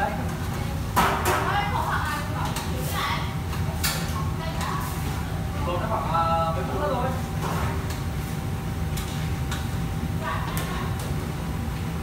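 Metal utensils clatter against a pan.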